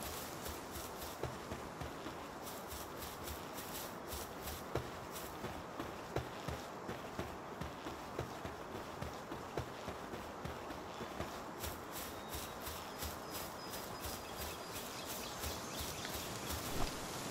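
Footsteps run steadily over grass.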